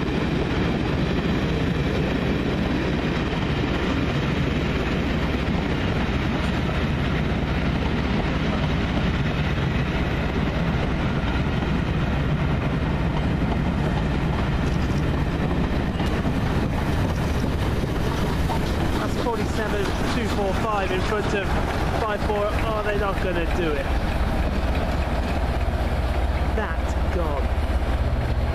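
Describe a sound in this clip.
A train rumbles past close by on the tracks.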